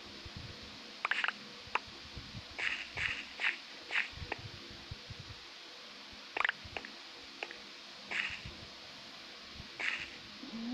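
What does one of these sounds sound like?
Footsteps crunch on gravel and stone, in short bursts.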